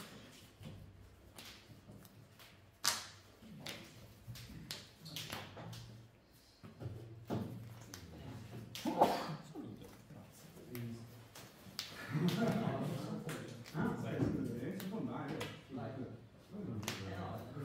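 Playing cards slide and tap on a table mat.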